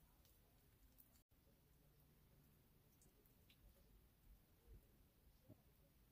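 Small hands squish and crinkle a soft plastic wrapper, very faintly.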